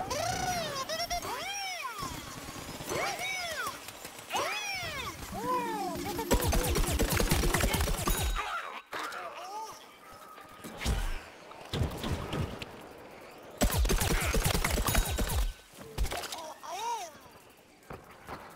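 Bright chiming jingles ring out with each scoring reward.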